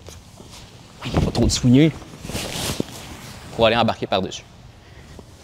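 A man speaks in short, strained bursts close by.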